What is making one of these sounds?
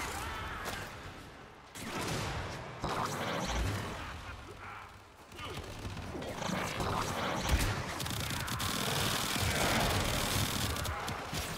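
Gunfire and energy blasts crackle rapidly.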